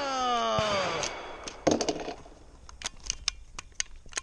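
A rifle's action clicks and clacks as it is handled.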